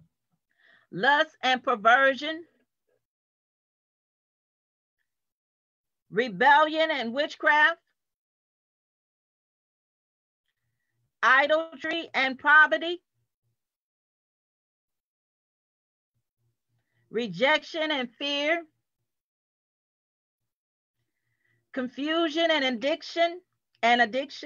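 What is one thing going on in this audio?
A middle-aged woman speaks clearly in short phrases with long pauses, heard through an online call.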